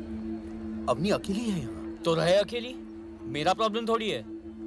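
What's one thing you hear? A young man speaks tensely nearby.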